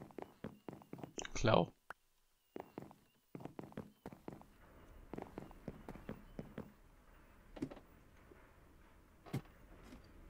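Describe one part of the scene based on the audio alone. Footsteps knock steadily on a wooden floor.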